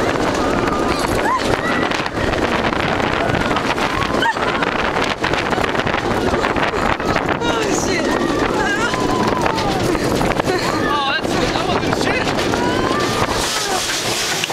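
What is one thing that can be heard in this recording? A roller coaster rattles and clatters along its track.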